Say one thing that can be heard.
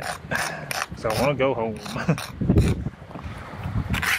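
A trowel scrapes and taps against brick.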